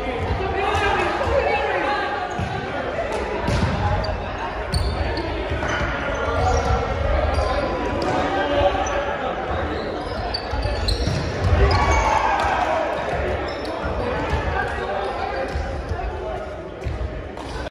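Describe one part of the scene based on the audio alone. Young men talk and call out in a large echoing gym.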